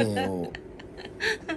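A man speaks calmly and playfully up close.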